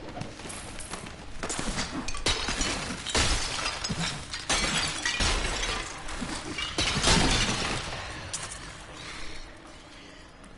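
Magic blasts and combat effects crackle and whoosh in quick bursts.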